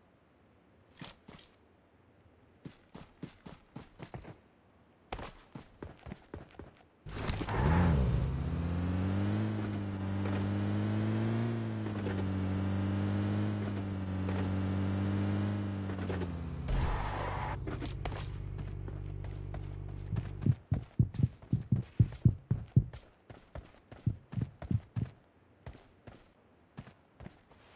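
Footsteps run on grass and dirt.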